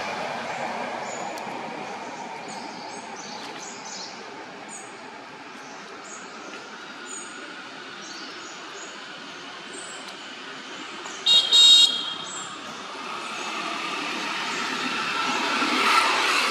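A baby macaque suckles milk with soft smacking sounds.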